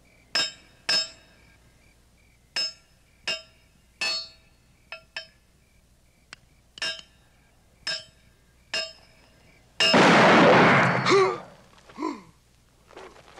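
A revolver fires shot after shot, each sharp crack echoing in a closed space.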